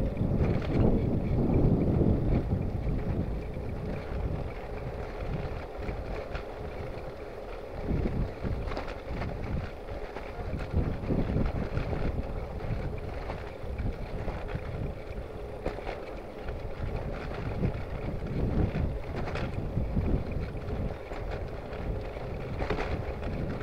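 A basket and bike parts rattle over bumps.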